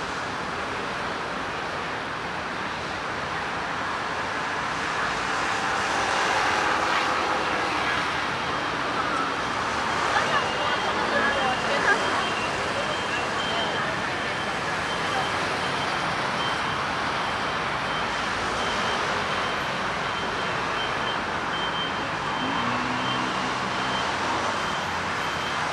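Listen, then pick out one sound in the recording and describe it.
City traffic hums steadily nearby outdoors.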